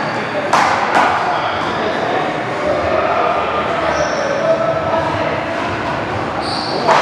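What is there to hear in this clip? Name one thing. A rubber ball smacks sharply against a wall, echoing through a large hall.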